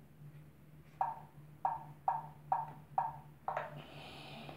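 A tablet beeps several times in a steady rhythm.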